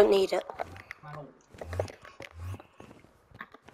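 A game character gulps down a drink in short swallows.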